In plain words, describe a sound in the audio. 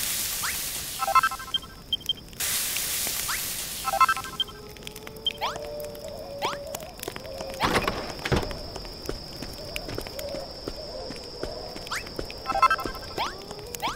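Menu chimes ring out in short bright notes.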